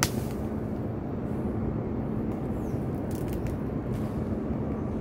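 Wind rustles through leafy branches and buffets outdoors.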